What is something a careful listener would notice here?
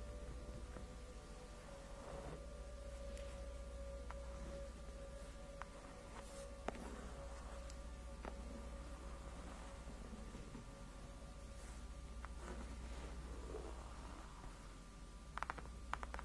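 Fingertips scratch and rub softly on a smooth surface, close up.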